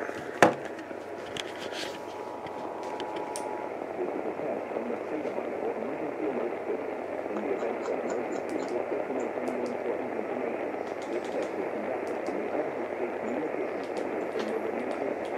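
A small radio speaker hisses with steady, muffled static.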